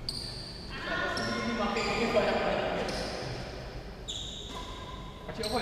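Sneakers squeak sharply on a hard court floor in an echoing hall.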